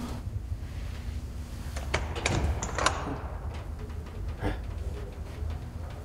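A metal vault wheel turns and clanks.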